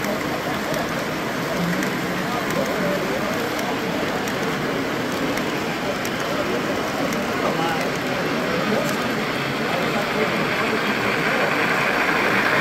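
Model train wheels clatter steadily along the rails.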